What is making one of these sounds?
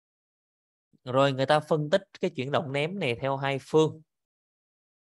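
A woman speaks calmly through a microphone, as on an online call.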